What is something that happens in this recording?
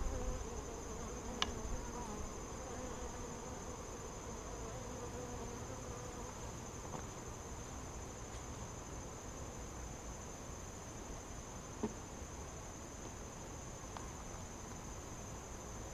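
Honeybees buzz in a steady swarming hum.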